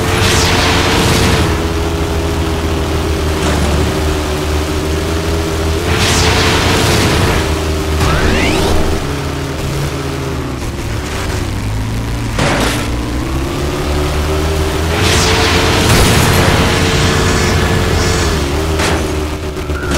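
A buggy's engine roars steadily, shifting pitch as it speeds along.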